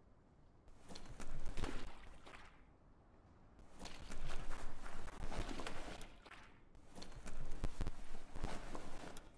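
Footsteps patter on wet ground.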